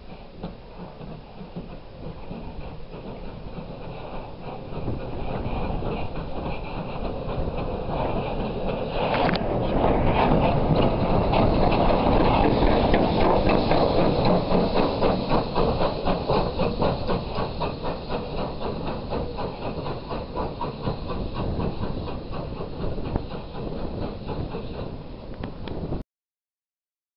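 A steam locomotive chuffs rhythmically, growing loud as it passes close by, then fading away.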